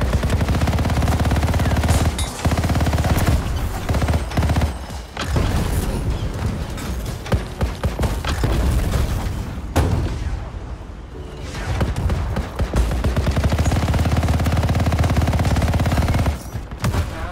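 Heavy machine guns fire in rapid bursts.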